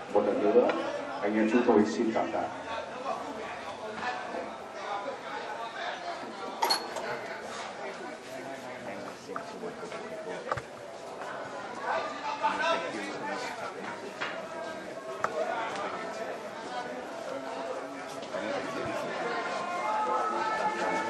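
A crowd of men and women murmur and talk quietly nearby.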